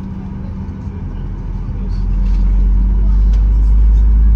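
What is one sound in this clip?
A jet engine's low rumble grows louder as the plane speeds up.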